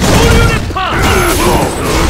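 A fiery blast bursts with a crackling whoosh.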